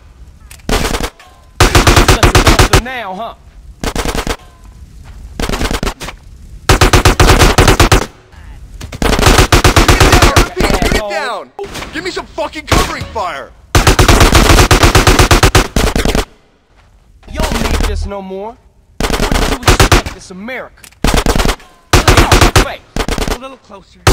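Rapid bursts of automatic gunfire ring out.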